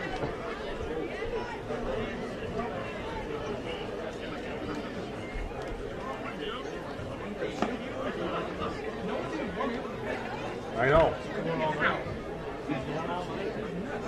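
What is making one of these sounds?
A crowd murmurs and chatters in the stands outdoors.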